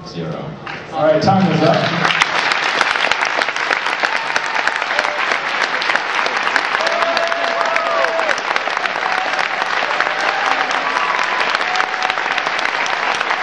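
An audience claps loudly in a large room.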